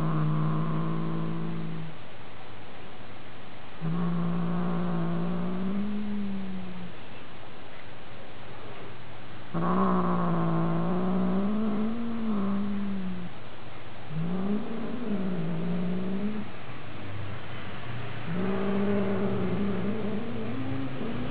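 A young cat growls and yowls in long, drawn-out calls.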